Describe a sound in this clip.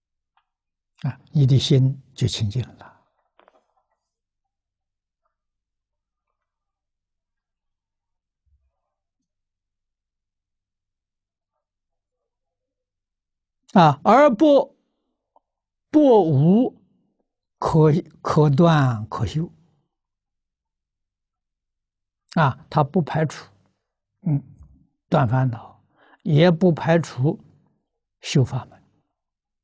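An elderly man speaks calmly through a close microphone, in short phrases with long pauses.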